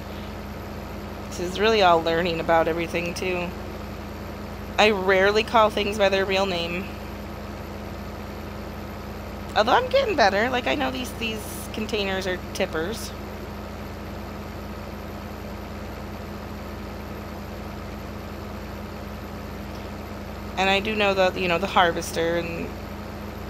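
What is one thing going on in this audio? A combine harvester's engine hums steadily.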